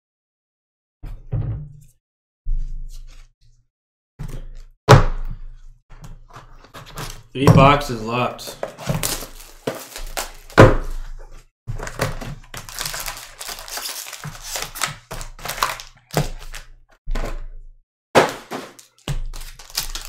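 Cardboard boxes bump and scrape as hands handle them.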